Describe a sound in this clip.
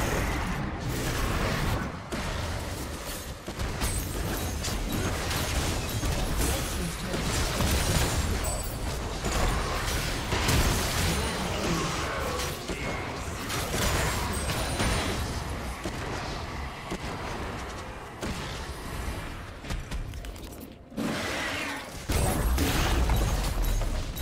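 Game spell effects and weapon hits crackle and clash.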